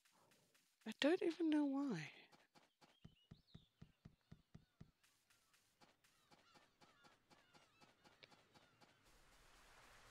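Footsteps patter quickly on dirt and stone.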